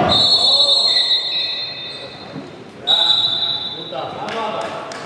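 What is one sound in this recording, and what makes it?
A referee's whistle shrills twice in an echoing sports hall.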